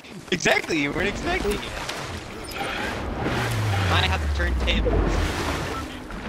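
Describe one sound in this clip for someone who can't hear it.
Water splashes as a character plunges in and swims.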